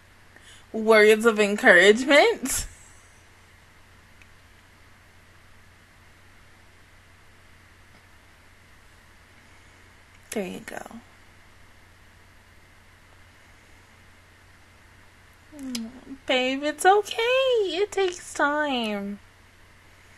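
A young woman speaks with animation close to a microphone, in short bursts with long pauses.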